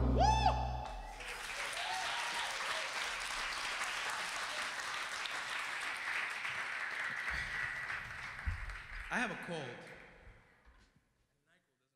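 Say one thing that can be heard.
An audience claps and cheers in a large room.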